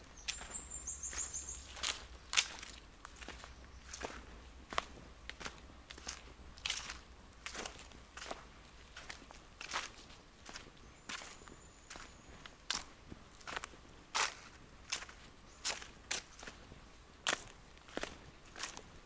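Footsteps crunch slowly on dry leaves close by.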